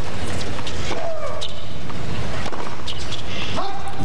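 A racket hits a tennis ball with a sharp pop.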